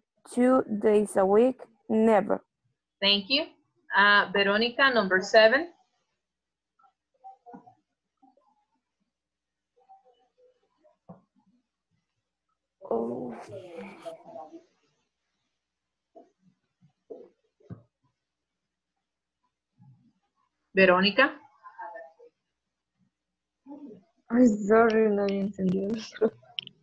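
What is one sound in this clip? A young woman speaks calmly over an online call, in bursts with pauses.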